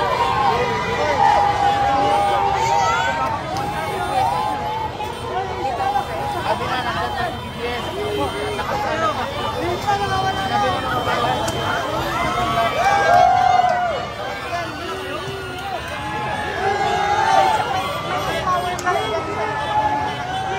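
A large crowd outdoors cheers and shouts excitedly.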